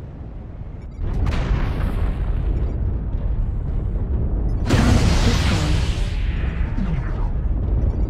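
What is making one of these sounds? A deep mechanical rumble drones steadily and grows louder toward the end.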